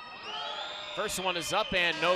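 Spectators in a large echoing hall shout and cheer loudly.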